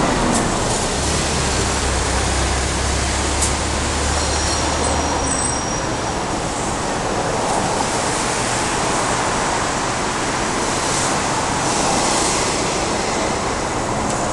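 City traffic hums steadily in the distance below.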